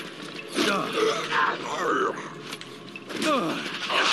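A heavy blow strikes a body with a wet, squelching thud.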